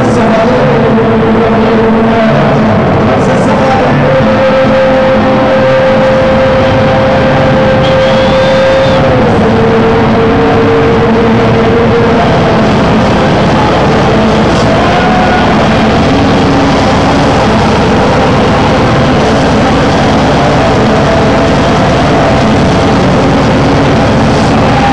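Loud electronic dance music with a heavy pounding beat plays through a big sound system.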